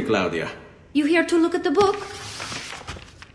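A woman answers calmly.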